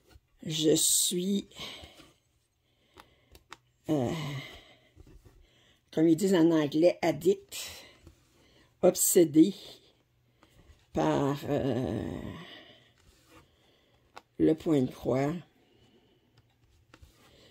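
A needle and thread pull softly through stiff fabric.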